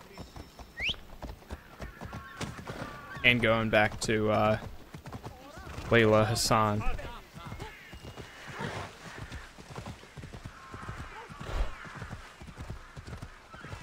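A horse's hooves clop quickly on a stone road.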